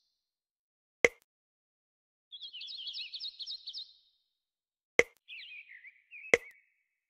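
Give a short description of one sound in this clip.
A game tile clicks sharply into place.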